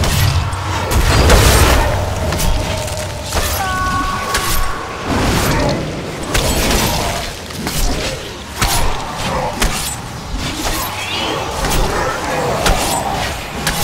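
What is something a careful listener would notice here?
Spell blasts and weapon strikes crackle and thud in a fast game battle.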